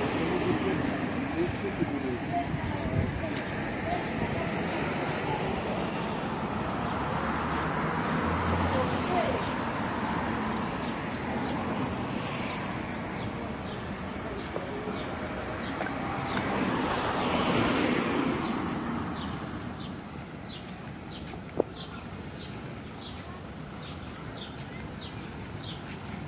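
Traffic hums and cars pass on a nearby street outdoors.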